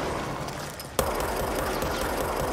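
A pistol fires.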